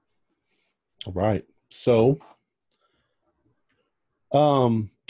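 A man speaks in short bursts with animation through an online call.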